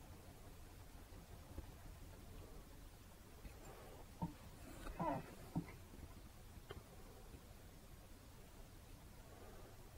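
A brush softly scrapes and dabs paint onto a canvas.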